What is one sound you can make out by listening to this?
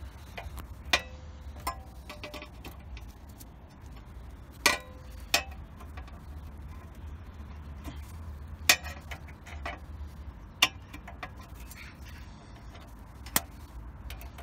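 Pliers click and clink against metal parts now and then.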